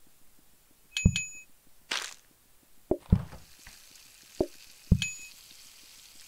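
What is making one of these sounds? A bright coin chime rings.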